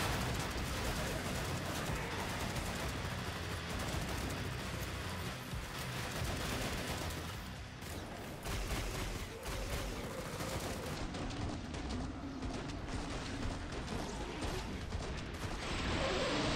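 Rapid gunfire crackles in bursts.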